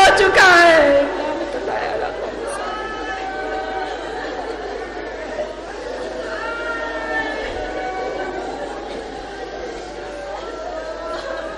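A woman sobs and weeps quietly.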